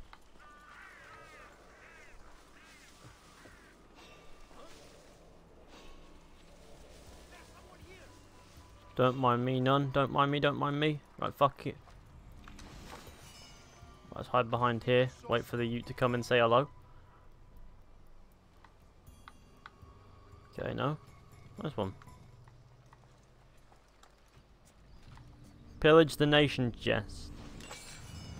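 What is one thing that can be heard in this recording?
Footsteps crunch softly on dirt and stone.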